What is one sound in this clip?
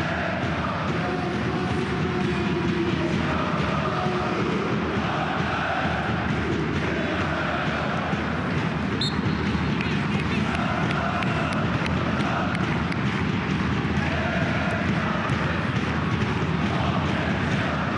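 A large stadium crowd chants and sings steadily.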